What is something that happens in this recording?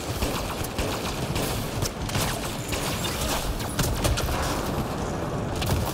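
Explosions boom and roar with fire.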